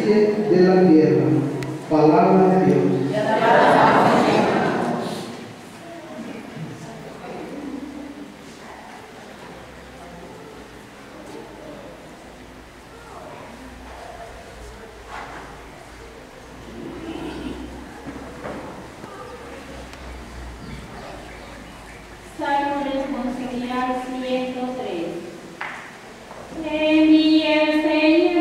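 A crowd of people sings slowly together in a room.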